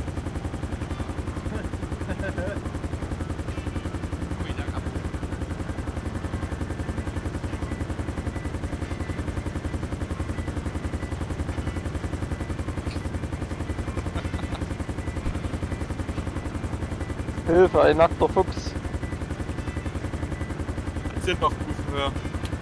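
A helicopter's rotor thumps steadily nearby.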